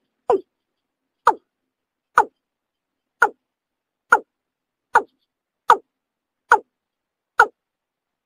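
A bird gives short, harsh calls, repeated evenly about once a second.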